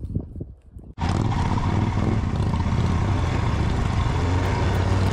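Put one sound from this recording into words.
A motorcycle engine runs steadily while riding.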